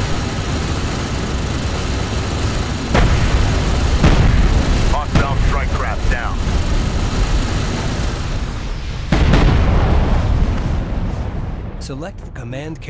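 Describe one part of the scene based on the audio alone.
Gunfire rattles steadily.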